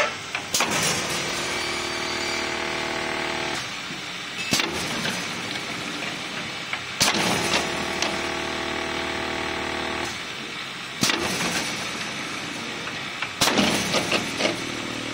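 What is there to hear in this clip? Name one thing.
Factory machinery hums and whirs steadily.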